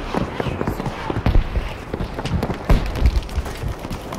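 An explosion blasts and throws up snow.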